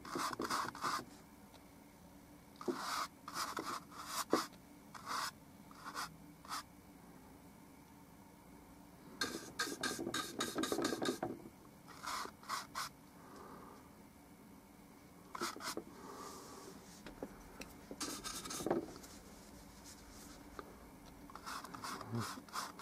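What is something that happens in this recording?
A paintbrush brushes and scratches across a canvas in short strokes.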